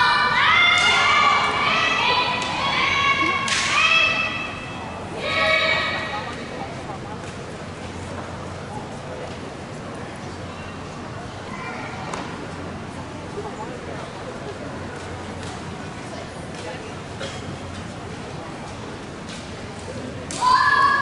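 Wooden practice weapons clack together.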